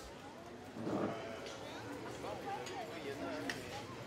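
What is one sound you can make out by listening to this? Men and women chat nearby in a lively street.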